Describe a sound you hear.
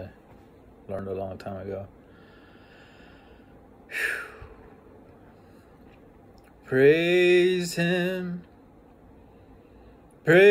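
A middle-aged man speaks slowly and calmly, close by, with pauses between phrases.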